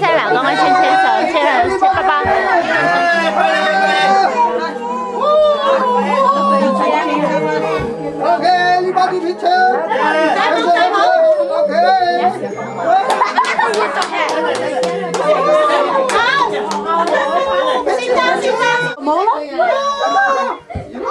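Young children and adults sing loudly together.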